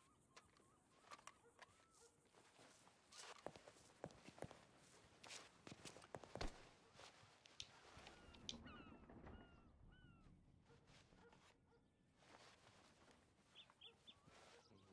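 Footsteps knock on a hard floor.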